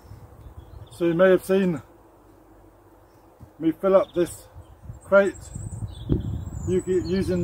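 A middle-aged man talks calmly and close by.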